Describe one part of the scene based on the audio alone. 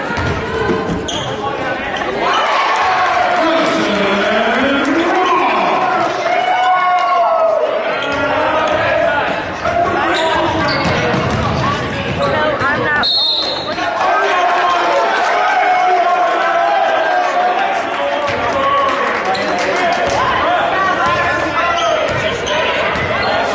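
A crowd of spectators chatters and cheers nearby.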